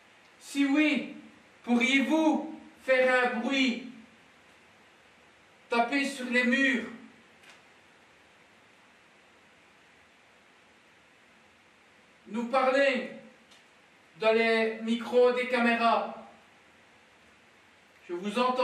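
A man speaks calmly in short bursts, close to a microphone.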